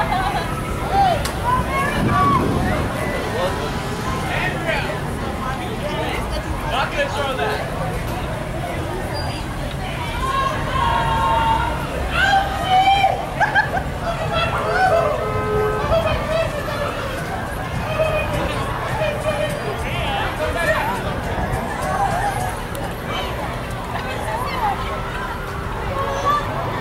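A crowd of onlookers chatters and cheers outdoors nearby.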